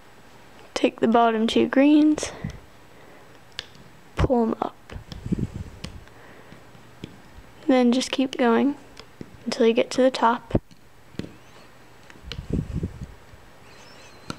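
A plastic hook taps and scrapes against a plastic loom.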